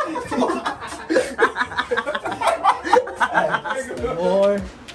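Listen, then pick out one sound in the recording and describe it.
A young man laughs loudly and breathlessly close by.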